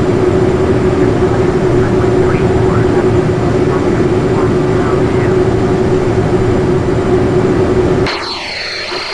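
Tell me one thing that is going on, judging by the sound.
Jet engines hum steadily, heard from inside a cockpit.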